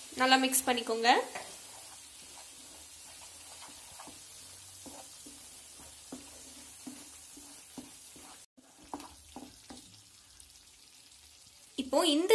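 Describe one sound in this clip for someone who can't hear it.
A wooden spatula scrapes and stirs thick sauce in a pan.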